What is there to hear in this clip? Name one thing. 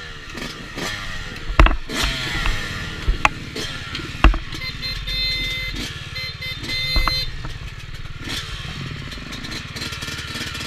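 Another dirt bike engine buzzes a little way ahead.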